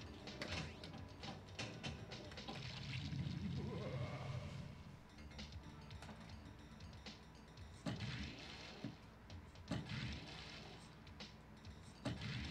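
A pinball machine's flippers clack and the ball knocks against bumpers.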